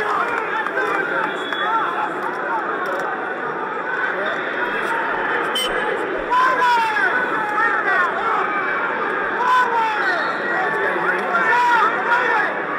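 A large crowd shouts and cheers in a big echoing arena.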